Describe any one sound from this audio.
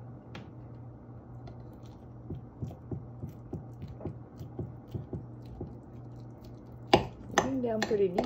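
A knife scrapes through ground meat against a glass dish.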